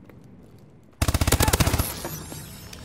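A rapid burst of automatic gunfire rings out.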